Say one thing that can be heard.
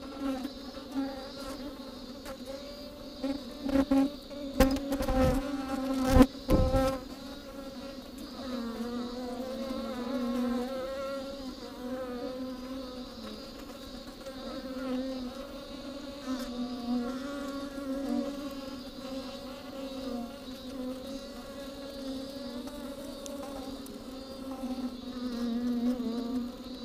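Hornets buzz close by, with a steady drone that wavers in pitch.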